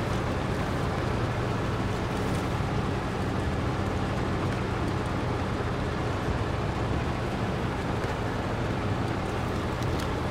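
Tyres crunch over rough rocky ground.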